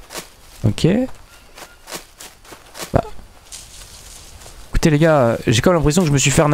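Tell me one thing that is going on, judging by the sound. Footsteps rustle through leafy undergrowth.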